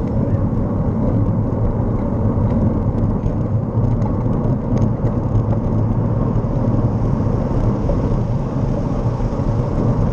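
Wind rumbles steadily against the microphone while moving outdoors.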